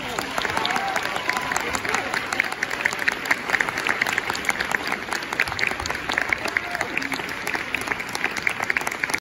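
A jazz band plays a lively tune.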